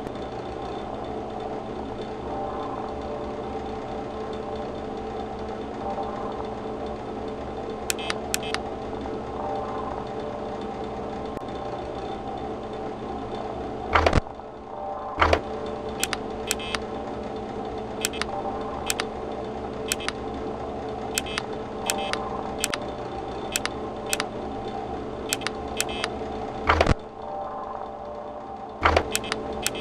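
An electric fan whirs steadily.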